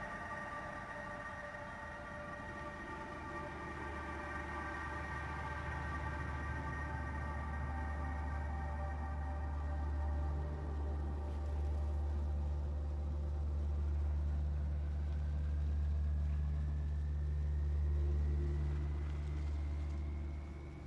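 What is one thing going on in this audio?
A vehicle engine idles with a low, steady rumble.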